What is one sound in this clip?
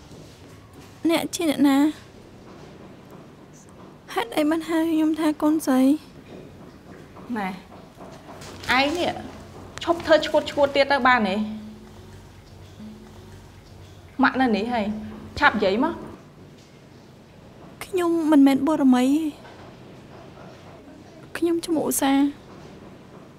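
A woman speaks sharply and firmly close by.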